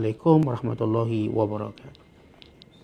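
A man speaks calmly and close to a microphone, then goes quiet.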